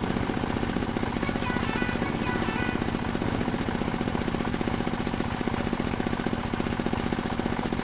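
An engine chugs rapidly and steadily close by.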